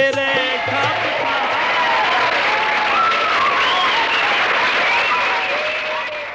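A man sings loudly through a microphone on a stage.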